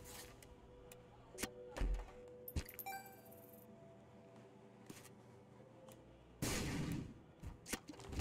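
Short video game sound effects pop and thud.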